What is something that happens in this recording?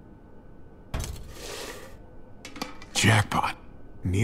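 A metal box lid clanks open.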